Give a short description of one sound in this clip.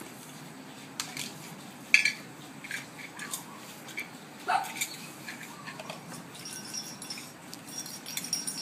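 Plastic toys clatter and clack as children handle them.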